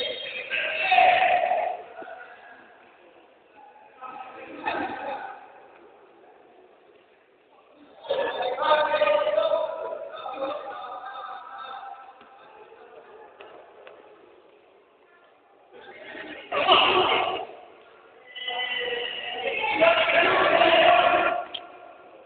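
Young men shout to each other in a large echoing hall.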